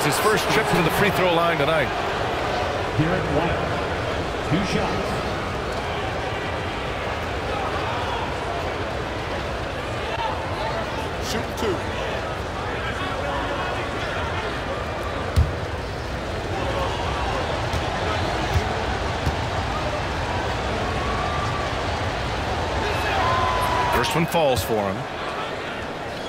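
A large crowd murmurs and cheers steadily in a big echoing arena.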